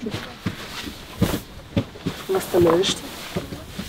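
Clothing rustles and thumps as a jacket is handled.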